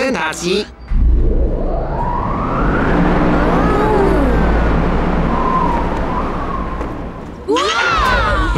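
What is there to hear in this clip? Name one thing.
Spinning brushes of a train wash swish and whir steadily.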